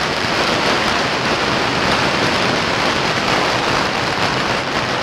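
Firecrackers crackle and pop in a dense, loud, unbroken barrage close by.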